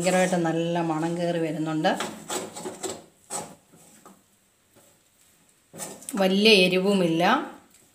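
A metal spoon scrapes and stirs in a metal pan.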